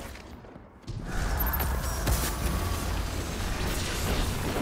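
A loud energy blast roars.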